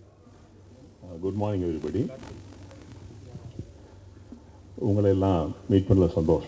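A middle-aged man speaks with animation into a microphone over a loudspeaker.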